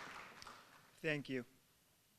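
A young man speaks briefly through a microphone.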